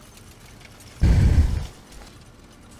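A gun clicks and clatters as it is switched for another.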